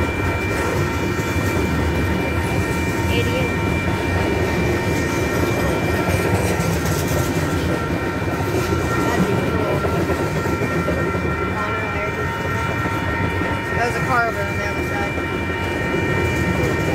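Steel wheels squeal on the rails.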